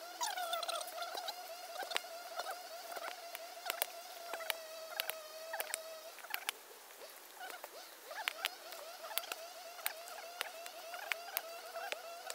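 Coconut husks thump softly as they are tossed onto a pile.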